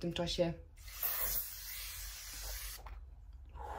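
A spray bottle hisses a mist.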